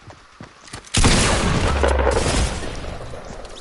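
A gun fires a loud blast.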